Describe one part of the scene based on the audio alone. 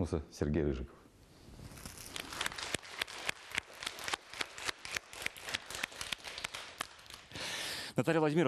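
A crowd of children claps.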